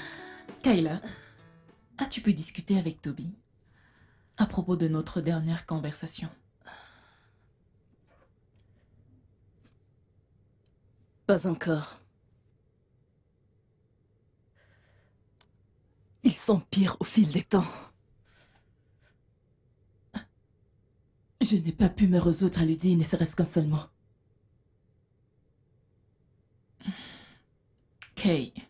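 A woman speaks emotionally close by, her voice breaking.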